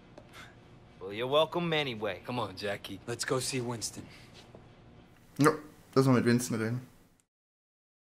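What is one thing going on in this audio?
Another man answers calmly.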